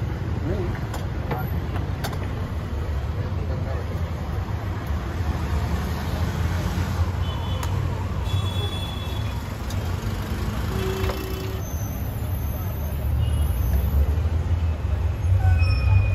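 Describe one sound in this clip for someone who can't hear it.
Metal cups clink and knock against each other.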